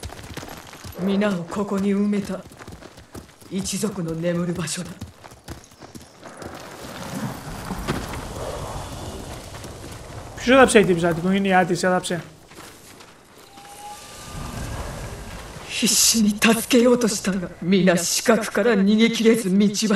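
A woman speaks calmly and gravely.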